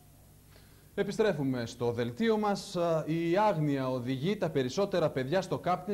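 A man speaks calmly and evenly into a microphone, reading out.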